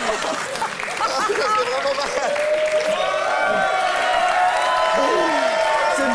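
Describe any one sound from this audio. A young man laughs and shouts with excitement.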